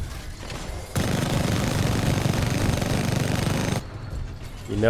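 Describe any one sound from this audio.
A heavy gun fires in a rapid, roaring burst.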